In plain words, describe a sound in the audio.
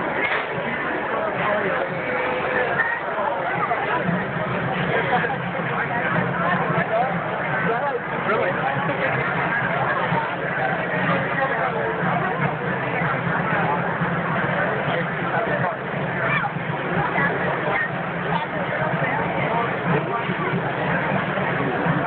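A dense crowd of men and women chatters all around outdoors.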